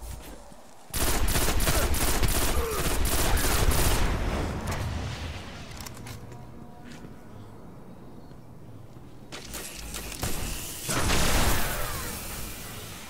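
Rapid gunfire bursts out in a video game.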